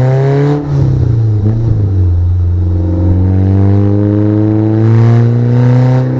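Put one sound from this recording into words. An engine drones loudly, its pitch dipping and then slowly rising as the vehicle drives along.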